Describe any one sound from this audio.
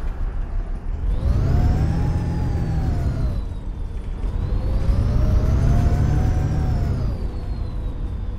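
A bus engine revs up and down twice as the bus pulls away.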